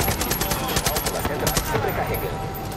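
A gun fires rapidly in quick bursts.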